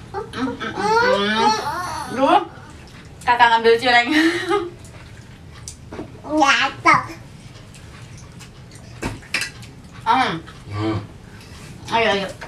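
A woman speaks gently and coaxingly nearby.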